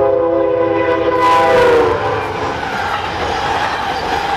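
A train rushes past with a loud clattering of wheels on the rails.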